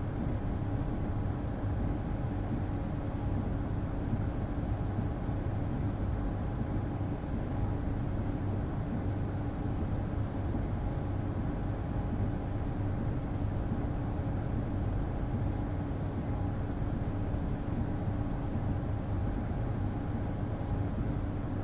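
A train's motor hums steadily while it stands still.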